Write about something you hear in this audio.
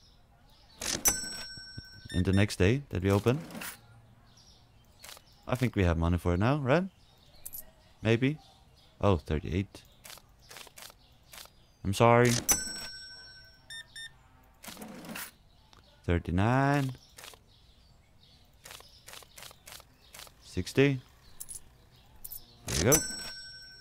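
A checkout scanner beeps.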